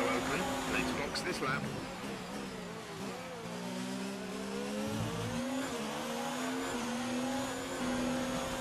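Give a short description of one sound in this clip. A racing car engine drops in pitch while braking, then revs up again through the gears.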